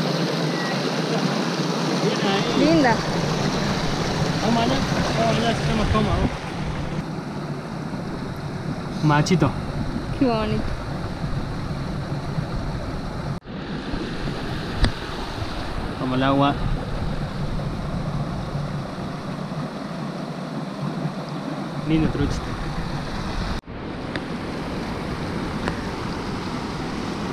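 Water trickles and burbles over rocks outdoors.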